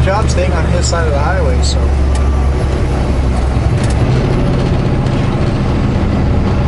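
A car engine hums steadily from inside the cab.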